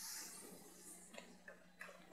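An eraser is set down with a soft knock.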